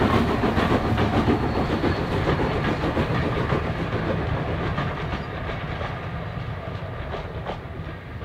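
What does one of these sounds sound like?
Coach wheels clatter over rail joints.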